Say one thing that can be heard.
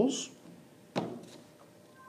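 A calculator knocks down onto a desk.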